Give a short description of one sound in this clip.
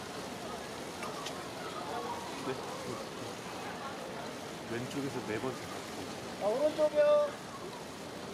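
Young women's voices call out and chatter nearby, outdoors.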